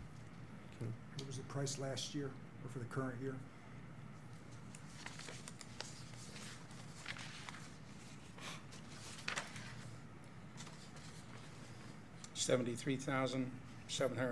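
Another middle-aged man answers calmly through a microphone.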